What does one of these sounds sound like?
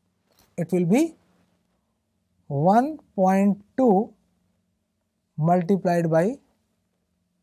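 A man speaks calmly and clearly, close to a microphone, in short bursts.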